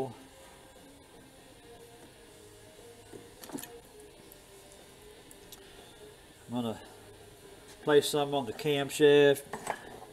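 Small metal engine parts clink as they are handled.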